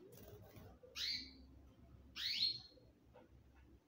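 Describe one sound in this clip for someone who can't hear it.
A small bird chirps a few short, high calls.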